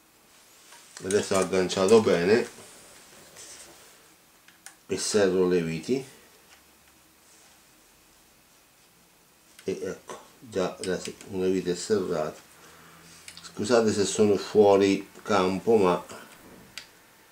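A man speaks calmly close by, in short bursts with pauses.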